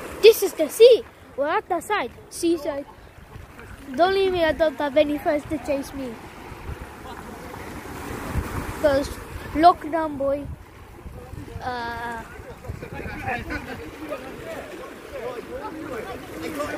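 Small waves lap against a pebble shore.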